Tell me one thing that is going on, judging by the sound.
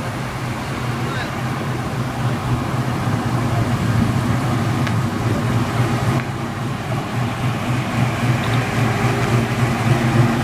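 A car engine rumbles deeply as a car rolls slowly past.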